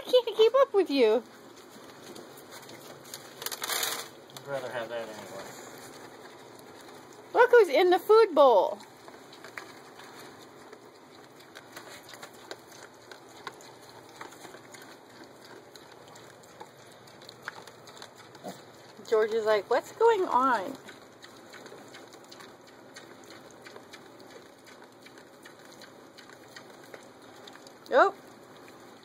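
Piglets squeal in short, shrill bursts.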